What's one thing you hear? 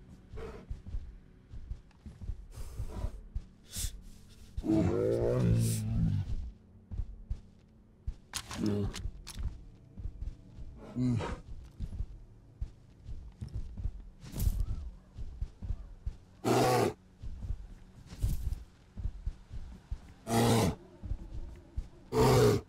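Footsteps thump on wooden boards.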